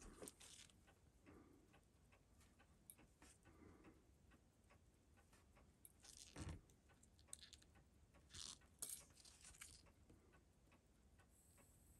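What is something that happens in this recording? Metal tweezers click and scrape against tiny metal parts.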